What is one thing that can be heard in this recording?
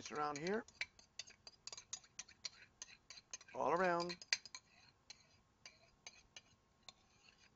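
A metal utensil taps and scrapes against a ceramic bowl.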